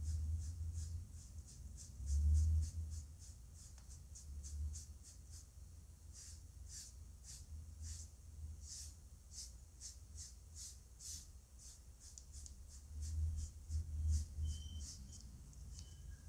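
A sponge dabs paint onto paper in a quick, steady rhythm.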